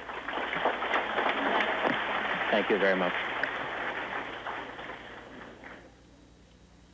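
A large crowd applauds in an echoing hall, then the applause fades away.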